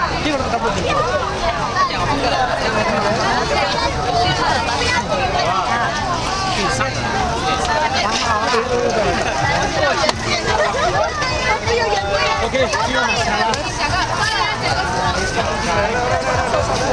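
A crowd of men and women chatter and call out excitedly close by.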